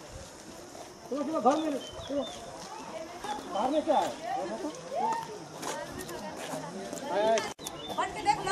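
Several men and women talk and call out nearby outdoors.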